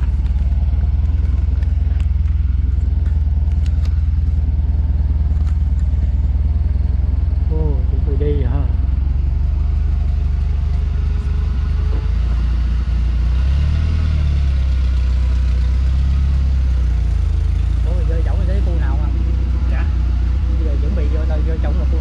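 A vehicle engine hums steadily at low pitch while driving.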